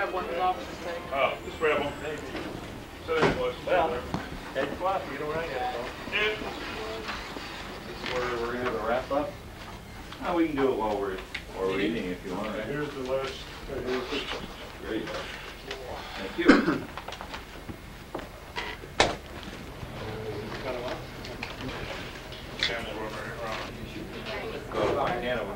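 Adult men and women chatter nearby in a room.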